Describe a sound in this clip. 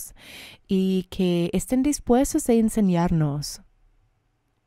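A woman speaks calmly into a microphone.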